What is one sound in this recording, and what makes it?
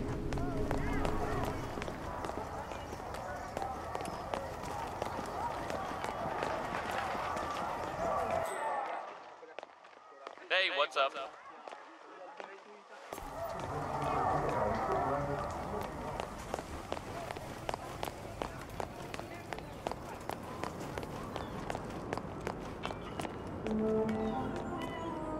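Footsteps tap steadily on cobblestones.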